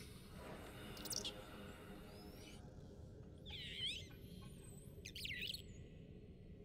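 A small creature chirps and squeaks in high, warbling bursts.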